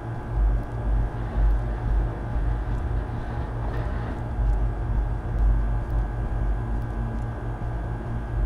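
Fluorescent lights buzz with a low hum.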